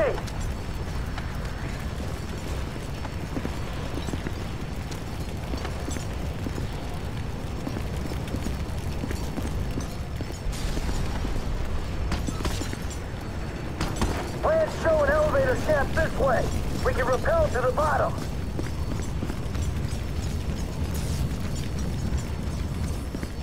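Fire roars and crackles steadily.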